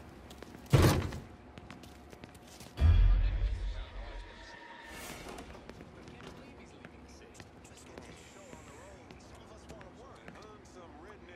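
Footsteps shuffle softly on a hard floor.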